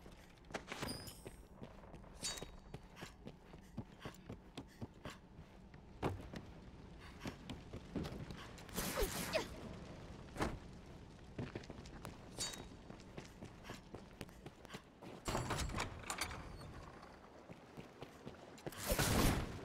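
Footsteps tread on stone in an echoing space.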